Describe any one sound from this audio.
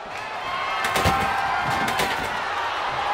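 A wooden table crashes to the floor.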